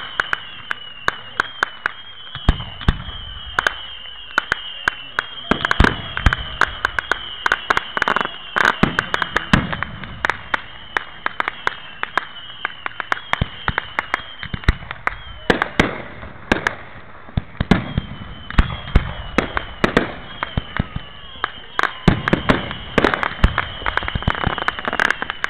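Fireworks bang and crackle repeatedly outdoors.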